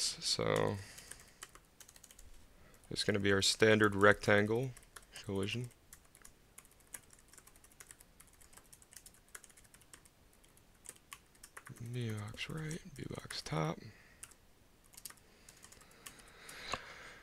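A keyboard clicks with quick typing.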